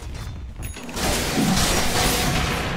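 Magic spells whoosh and crackle in a game battle.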